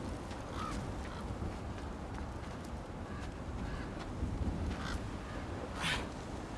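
Wind blows steadily.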